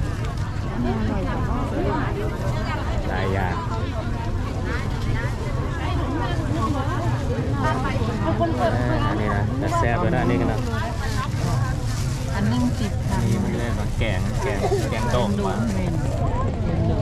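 Many people chatter all around, outdoors.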